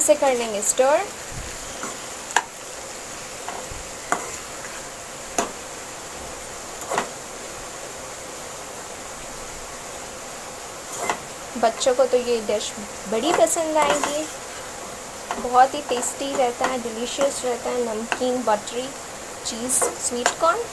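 A spatula scrapes and clinks against a metal pan.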